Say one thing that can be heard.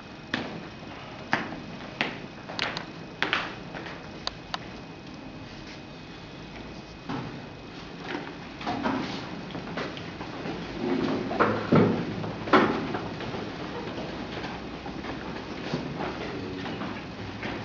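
Footsteps shuffle on a hard floor as several people walk.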